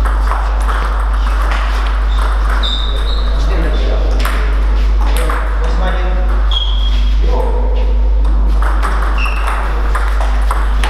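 Table tennis balls click back and forth on paddles and tables.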